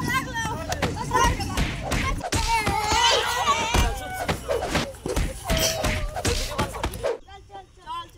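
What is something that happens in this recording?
Young men and boys shout excitedly in a scuffle.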